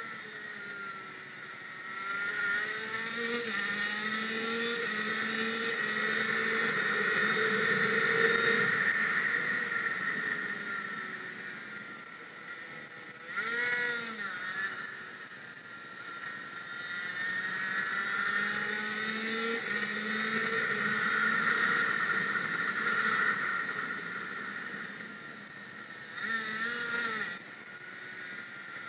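A motorcycle engine revs high and drops as it speeds up and slows through bends.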